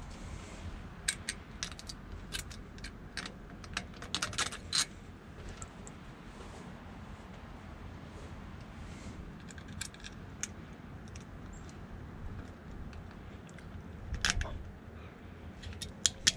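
Small metal parts click and tap as they are fitted together by hand.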